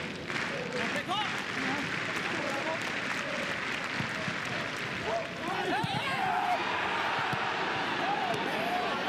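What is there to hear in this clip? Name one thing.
A crowd cheers loudly in an open stadium.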